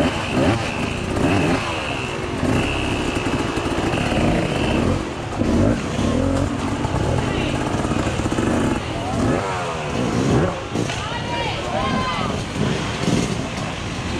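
Dirt bike engines rev and roar loudly, outdoors.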